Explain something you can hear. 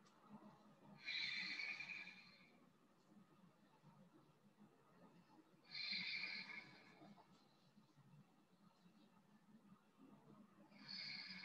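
A woman exhales audibly into a microphone during a stretch.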